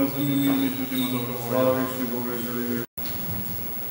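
A choir of men chants in a slow, sustained melody in a reverberant hall.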